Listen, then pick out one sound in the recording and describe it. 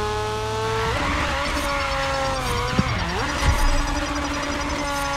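Tyres screech as a car drifts on asphalt.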